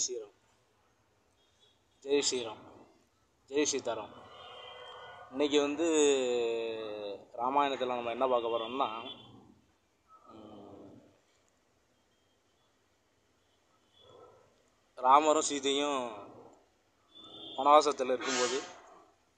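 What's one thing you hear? A middle-aged man talks with animation close to the microphone, in short bursts with pauses.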